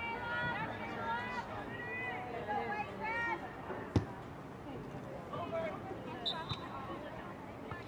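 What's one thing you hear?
Girls shout and call out across an open field.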